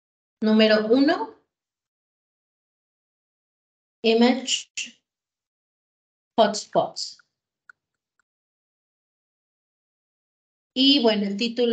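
A woman speaks slowly in short bursts over an online call.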